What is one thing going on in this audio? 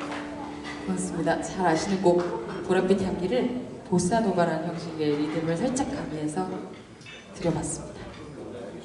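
A young woman talks into a microphone, heard over loudspeakers.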